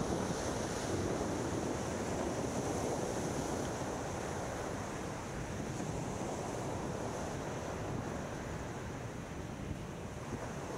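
Small waves wash onto a shore in the distance.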